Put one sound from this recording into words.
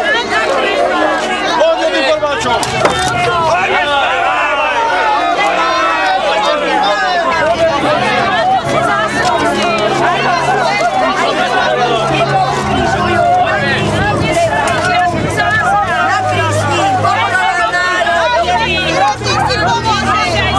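A crowd of men and women talks and murmurs outdoors.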